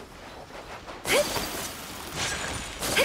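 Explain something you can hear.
An icy magical blast bursts with a sudden whoosh and sparkling chimes.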